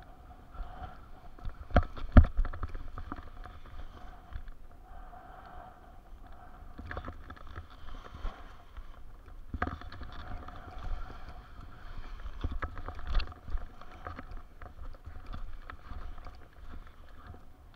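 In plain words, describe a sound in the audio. A paraglider wing flaps and rustles in the wind.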